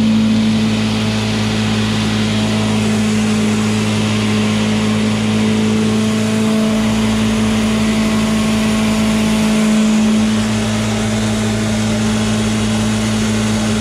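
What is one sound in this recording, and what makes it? An electric hammer mill hums as it grinds grain.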